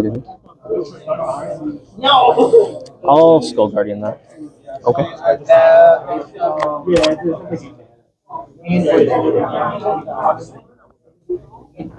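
Young men talk back and forth with animation, close by.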